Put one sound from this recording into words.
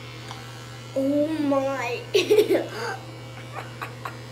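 A young boy speaks and laughs with excitement close by.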